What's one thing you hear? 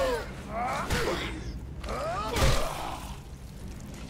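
A heavy boot stomps repeatedly on a creature's body with wet thuds.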